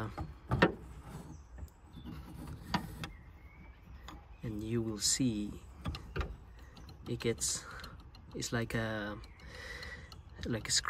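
A screwdriver pries and clicks against plastic trim.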